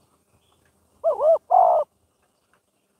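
A bird calls nearby with two short, clear whistling notes.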